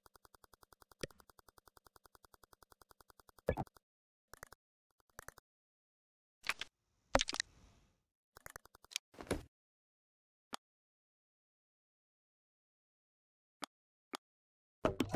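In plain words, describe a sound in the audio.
Menu clicks and blips sound one after another.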